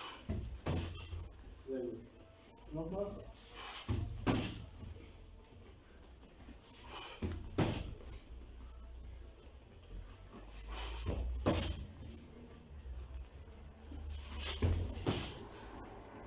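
Kicks and punches thud sharply against padded mitts.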